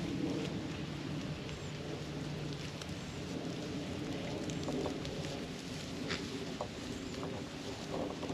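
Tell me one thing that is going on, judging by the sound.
Goats tear and munch grass close by.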